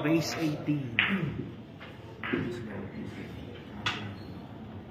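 Pool balls click sharply together.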